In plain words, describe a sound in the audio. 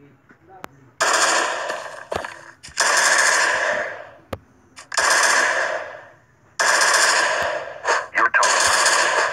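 Gunfire rattles in long, loud bursts.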